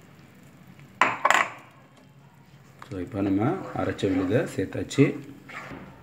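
A spatula scrapes and stirs in a pan.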